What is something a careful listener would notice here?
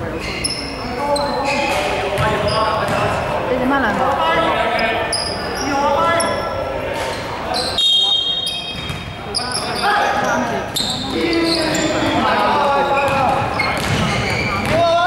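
Young men shout and call out to each other in an echoing hall.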